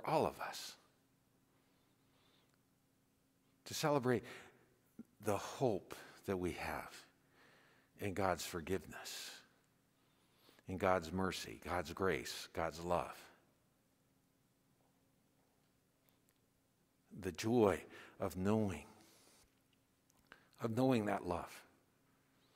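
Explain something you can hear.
A man speaks slowly and solemnly into a microphone in a large echoing room, with long pauses.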